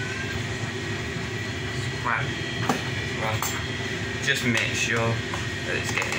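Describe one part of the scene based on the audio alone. A blender cup clinks and scrapes as it is lifted off.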